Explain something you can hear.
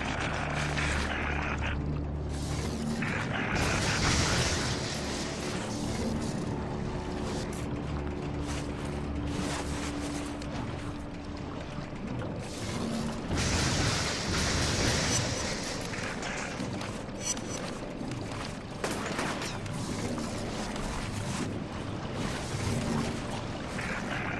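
Video game music and effects play.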